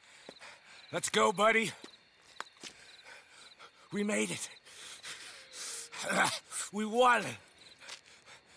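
A second man answers in a rough, weary voice.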